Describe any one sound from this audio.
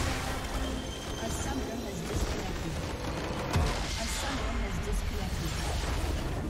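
Magic spell effects whoosh and crackle in a game.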